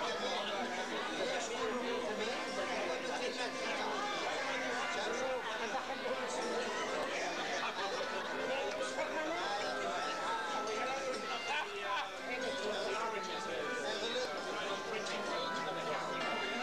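A crowd of men and women chatter at once in a large room.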